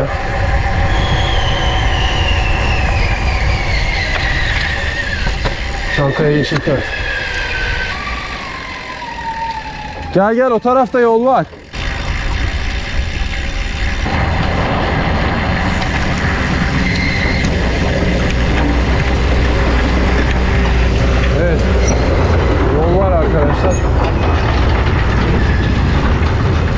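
Wind rushes loudly past a moving bicycle outdoors.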